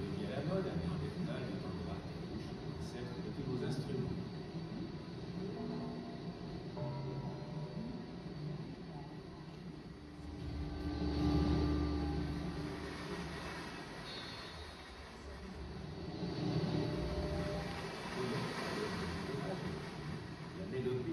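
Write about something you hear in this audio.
Electronic tones drone and warble through loudspeakers, swelling and fading.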